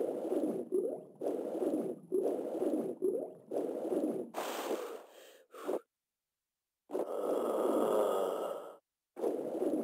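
Water splashes and swishes in steady, rhythmic swimming strokes.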